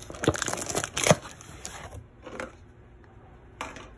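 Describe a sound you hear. A knife slices through packing tape on a cardboard box.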